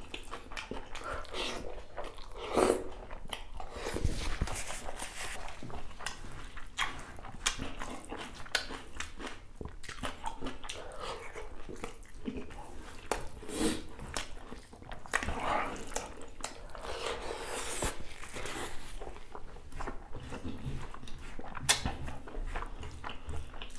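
A man chews food wetly and smacks his lips close to a microphone.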